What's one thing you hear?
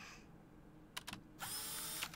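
A pair of binoculars clicks.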